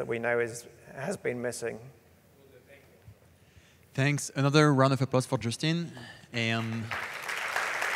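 A young man speaks calmly through a microphone in a large hall.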